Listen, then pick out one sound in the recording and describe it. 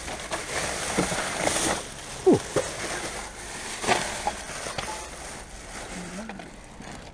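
Loose items clatter and knock against each other.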